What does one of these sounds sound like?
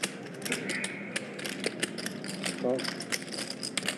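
Poker chips click and clatter together.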